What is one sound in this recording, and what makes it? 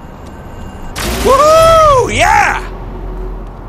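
A bright chime rings out, rising and falling in pitch.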